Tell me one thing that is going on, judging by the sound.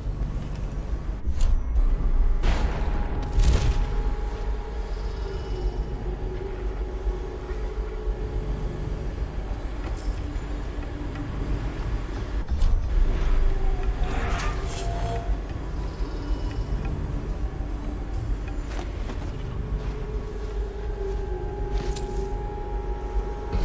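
Footsteps thud on hard floors and metal grating.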